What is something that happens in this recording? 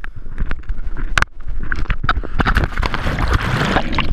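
A body plunges into water with a splash.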